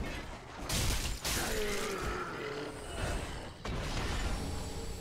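Swords swing and clash in a fight.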